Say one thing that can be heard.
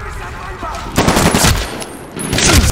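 An assault rifle fires a burst of shots.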